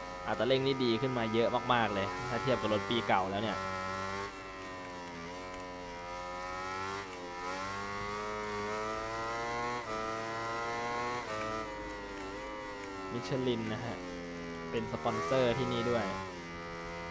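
A motorcycle engine revs up and down sharply with quick downshifts when braking for turns.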